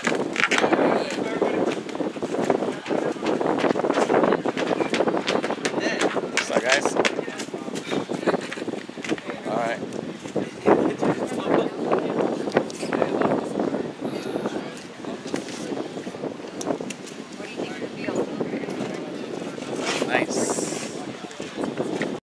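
Young men talk and chatter nearby, outdoors.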